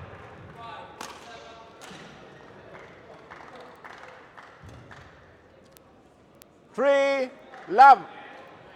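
A shuttlecock is struck sharply with a racket.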